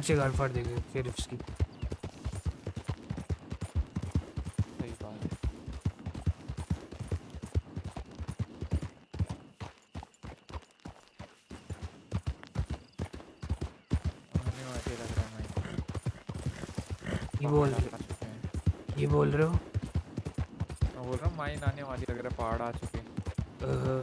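Horse hooves pound rapidly on a dirt track.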